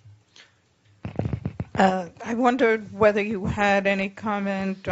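An elderly woman speaks with animation into a close microphone.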